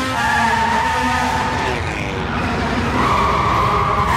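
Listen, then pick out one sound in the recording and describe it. Tyres screech as a car slides across a smooth floor.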